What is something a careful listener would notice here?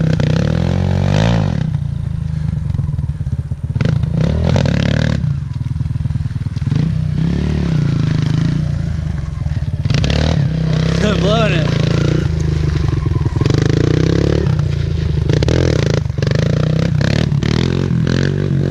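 A dirt bike engine buzzes and revs up and down close by.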